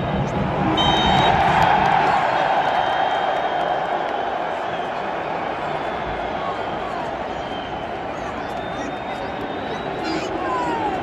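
A large stadium crowd chants and roars loudly all around.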